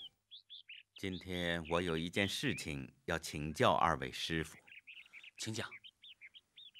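A man speaks calmly and formally, close by.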